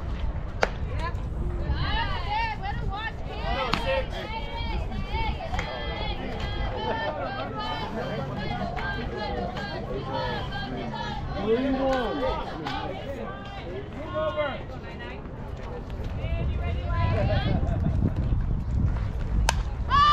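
Young women call out and chatter loudly outdoors.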